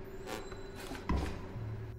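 A card slaps down onto a wooden table.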